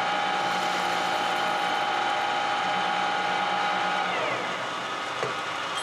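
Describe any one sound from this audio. A metal lathe runs and winds down to a stop.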